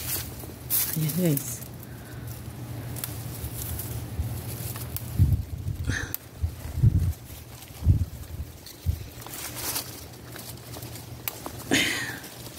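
Leaves rustle as a hand brushes through them.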